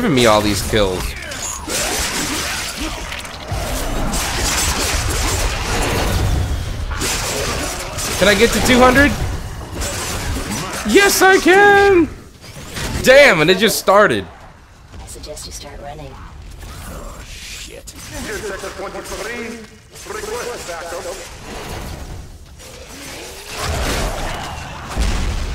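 Gunfire and explosions crackle and boom in a video game.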